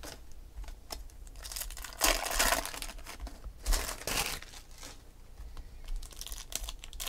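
Trading cards shuffle and rustle between fingers.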